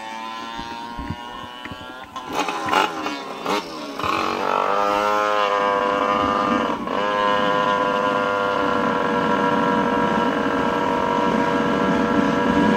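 Skateboard wheels roll and hum steadily on asphalt.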